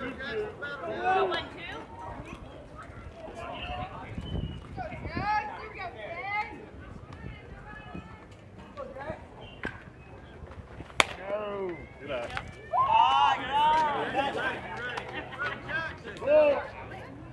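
Young girls cheer and chant loudly outdoors.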